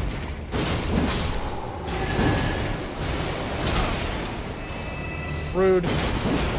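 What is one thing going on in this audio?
Swords whoosh through the air in quick swings.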